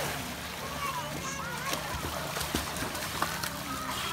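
A boy splashes while swimming.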